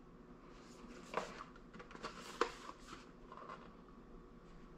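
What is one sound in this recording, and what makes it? A cardboard box rustles and taps as it is handled.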